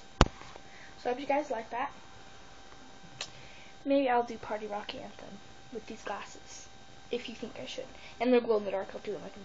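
A young girl talks close to the microphone.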